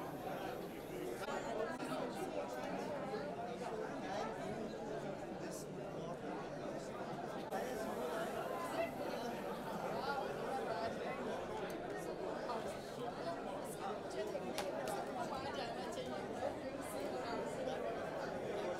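A crowd of men and women chatter loudly all around, close by in an echoing room.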